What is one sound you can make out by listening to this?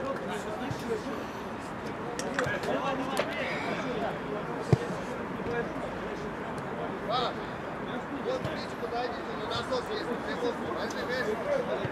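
Men call out to each other across an open outdoor pitch.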